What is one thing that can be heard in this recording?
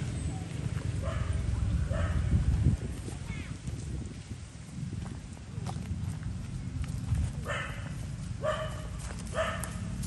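A young monkey squeals in short, high cries.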